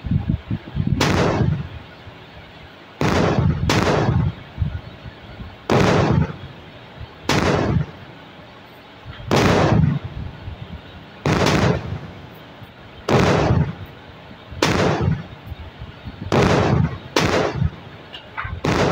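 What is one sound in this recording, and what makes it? Gunshots boom every couple of seconds, each followed by a short rumbling echo.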